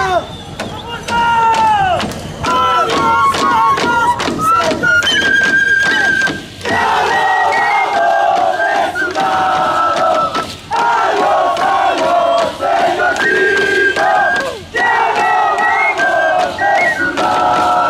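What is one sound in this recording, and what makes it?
A drum beats in a lively, steady rhythm.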